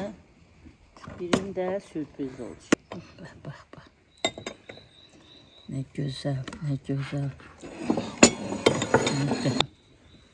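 A spatula scrapes and taps against a metal baking tray.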